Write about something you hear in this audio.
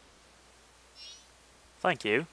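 A high, bright chime twinkles briefly.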